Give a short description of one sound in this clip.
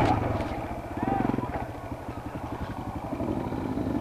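Several motorcycle engines idle nearby.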